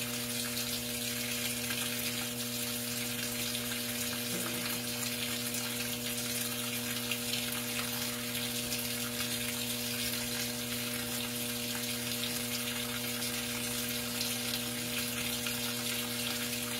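A washing machine motor hums steadily.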